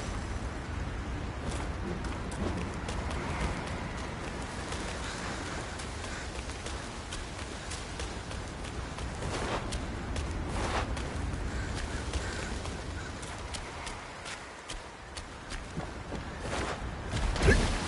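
Footsteps patter quickly over stone.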